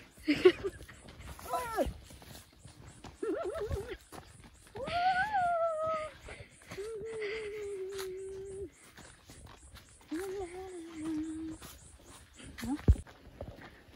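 A young woman sings and calls out playfully close by.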